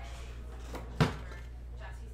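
A cardboard box is set down on a table with a soft thud.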